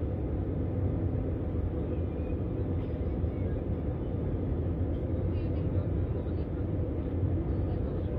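A jet engine roars steadily, heard muffled from inside the cabin.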